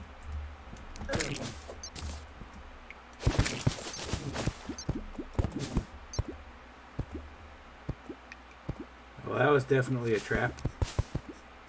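A man talks briefly and casually into a close microphone.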